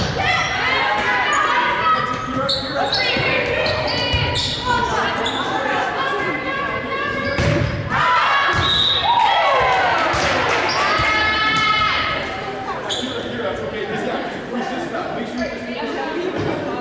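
Young women call out to each other.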